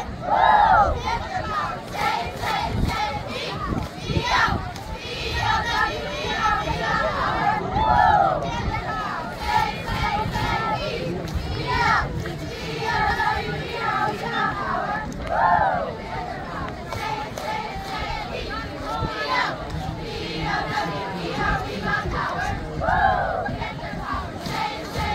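A group of girls chant cheers loudly in unison outdoors.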